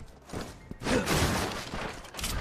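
A wooden crate smashes and splinters apart.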